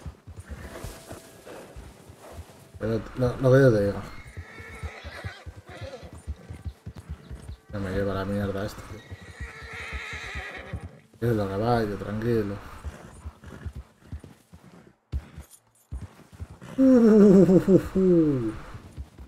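A horse gallops through deep snow with muffled, rapid hoofbeats.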